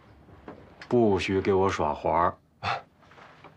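A young man speaks nearby.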